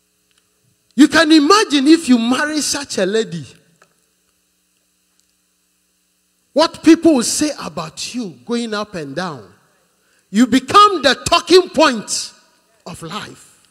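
A man preaches forcefully into a microphone, heard through loudspeakers in bursts with pauses.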